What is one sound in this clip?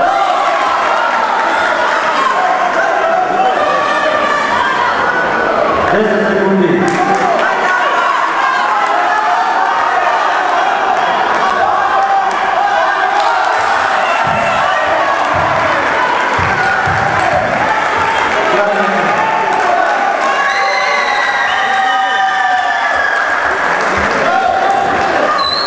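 A man nearby shouts instructions loudly.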